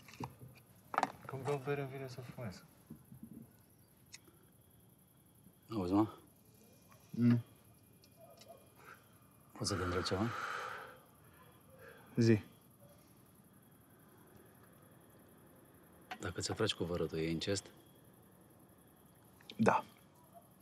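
A second man speaks quietly in a low voice, close by.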